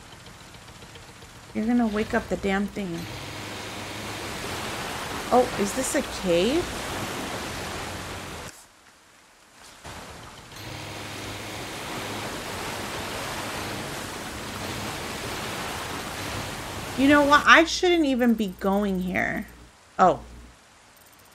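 Water splashes and rushes behind a moving boat.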